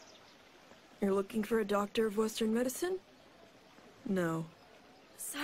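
An elderly woman speaks slowly in a low, quiet voice.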